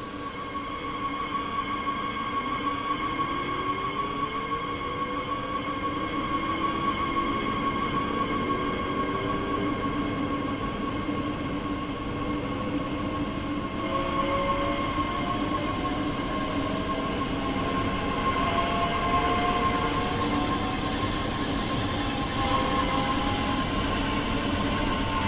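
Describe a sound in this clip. Train wheels rumble on the rails, growing louder.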